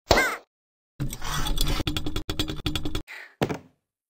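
A chandelier rattles and creaks as something swings from it.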